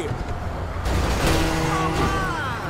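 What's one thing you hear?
A car crashes into a truck with a loud bang.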